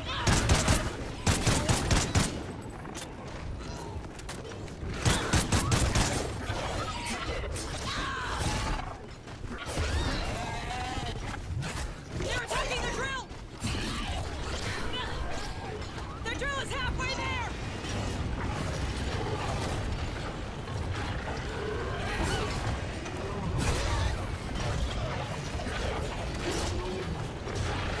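Creatures screech and shriek.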